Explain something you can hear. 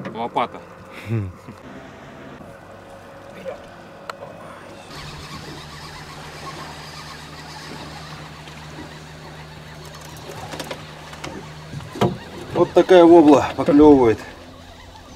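Water splashes softly.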